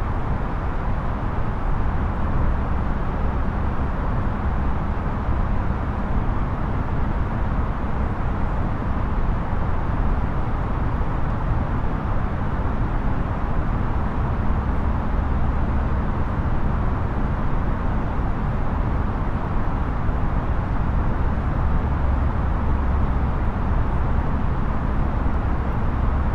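A jet airliner's engines drone steadily with a low rush of air.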